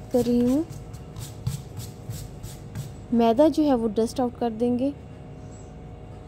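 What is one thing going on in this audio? Hands softly pat and smooth dough on a counter.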